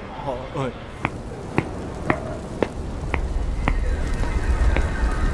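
Shoes tap on pavement in slow steps.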